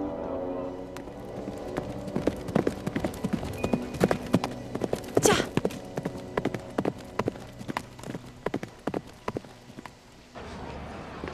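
Horse hooves clatter on a dirt track.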